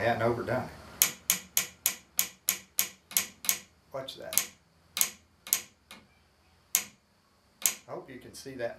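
A tool taps sharply and quickly against wood.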